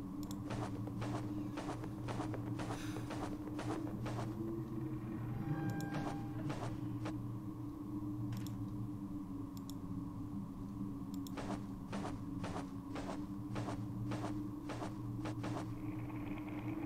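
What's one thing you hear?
Footsteps tread at a steady pace.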